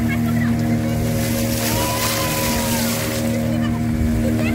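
A hand splashes through water.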